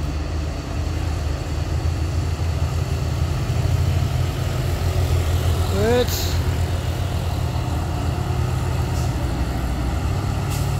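Another truck drives past with a deep engine roar.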